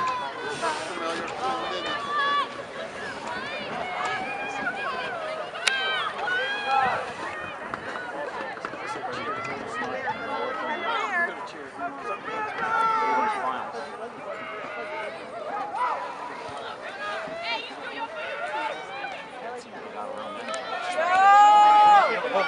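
Young women shout and call out across an open outdoor field.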